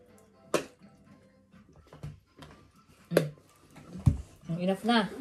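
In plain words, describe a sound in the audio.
A bottle of sauce is shaken with sharp knocks.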